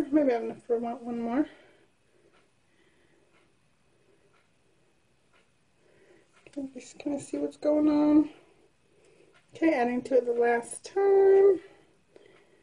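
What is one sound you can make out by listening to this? A woman talks calmly, close by, in short bursts.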